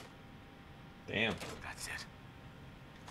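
A lock clicks and turns open with a metallic clunk.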